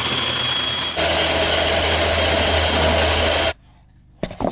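A machine runs with a loud, steady roar, then cuts off.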